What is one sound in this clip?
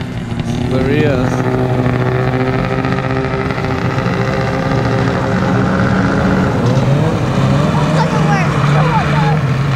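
A two-stroke snowmobile engine runs.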